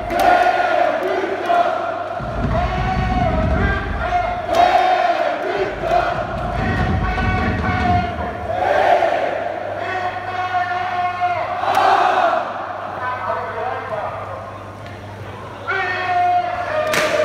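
A crowd claps along in rhythm.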